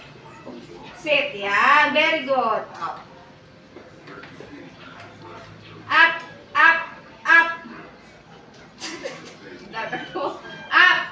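A young woman gives short, firm commands close by.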